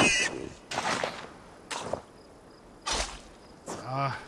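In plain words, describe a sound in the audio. Heavy thuds and scuffles sound close by.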